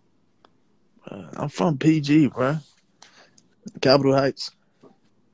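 A man speaks with animation through a phone microphone, close up.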